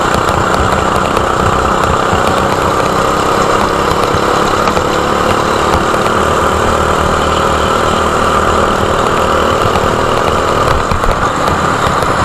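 A kart engine buzzes loudly up close at high revs.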